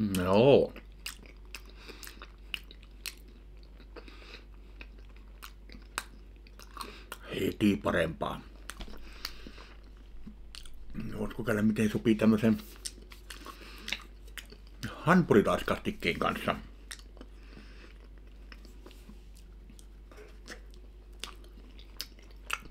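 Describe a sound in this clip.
A man chews food with his mouth open.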